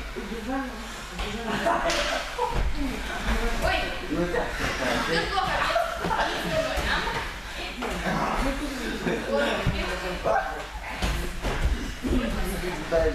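Children talk and call out in an echoing hall.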